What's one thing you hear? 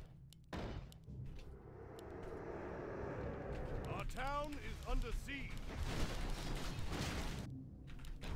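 Video game battle sounds rumble and clash.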